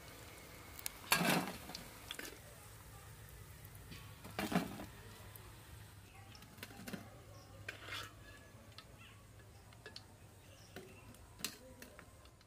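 A metal strainer clinks and scrapes against a metal plate.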